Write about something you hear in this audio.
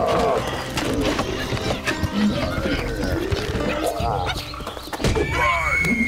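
A cartoon bear mumbles and grunts comically.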